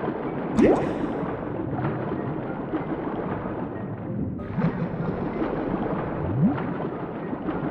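Bubbles gurgle and rise through water.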